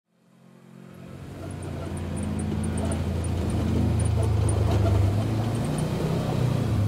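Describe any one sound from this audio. A vehicle's engine hums in the distance and grows louder as it approaches.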